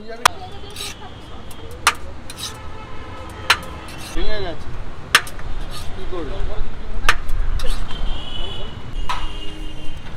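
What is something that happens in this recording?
A metal ladle clinks and scrapes against a large metal pot.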